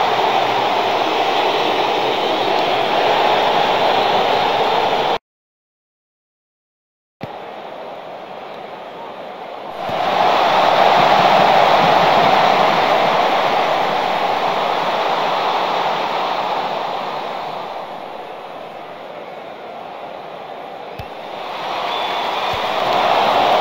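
A large stadium crowd roars and murmurs steadily, rising and falling.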